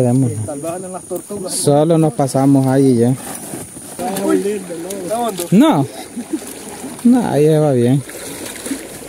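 Men talk loudly and with animation close by.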